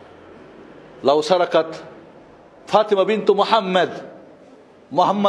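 A man preaches forcefully into a microphone, in bursts with pauses, in an echoing hall.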